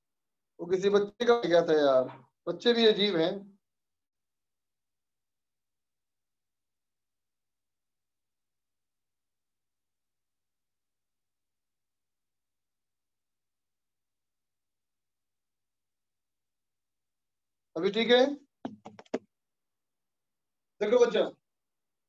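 A man speaks calmly into a close microphone, in short bursts with long pauses.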